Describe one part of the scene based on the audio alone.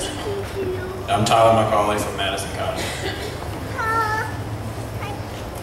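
Another young man speaks calmly into a microphone over loudspeakers.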